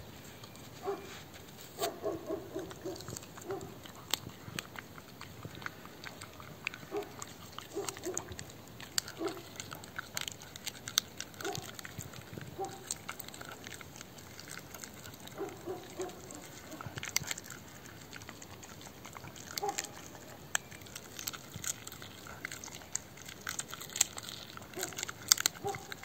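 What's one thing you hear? A dog's paws crunch on snow.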